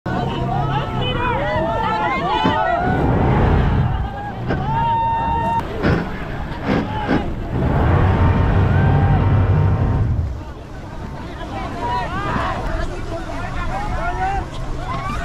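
A boat's outboard engine rumbles steadily.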